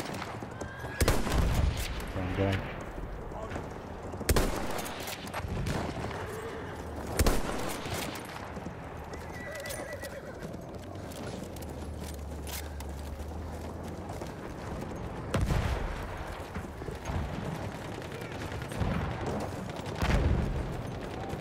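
Rifle shots crack loudly, with echoing booms.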